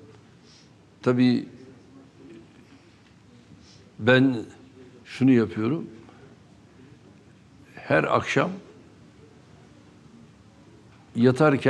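An older man speaks calmly in short bursts with pauses, close to a microphone.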